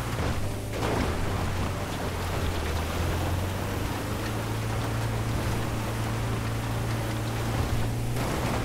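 A van engine hums steadily as it drives.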